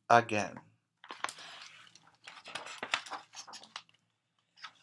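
Paper pages rustle and flip as a book is turned.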